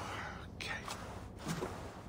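A man says a short word quietly.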